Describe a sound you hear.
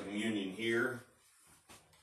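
An elderly man speaks briefly and calmly nearby.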